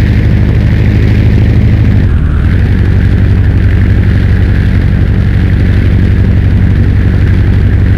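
A propeller plane's engine drones steadily and loudly.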